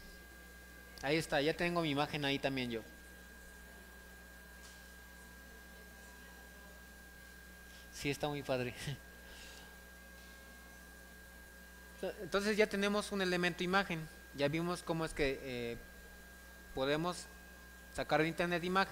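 A young man speaks calmly into a microphone, in short bursts with pauses.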